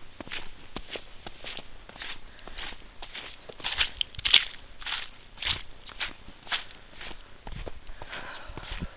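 Footsteps crunch steadily through fresh snow.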